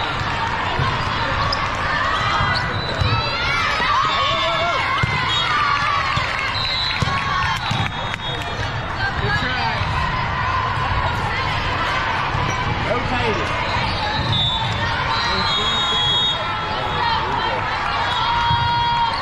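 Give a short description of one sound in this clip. Many voices chatter and call out across a large echoing hall.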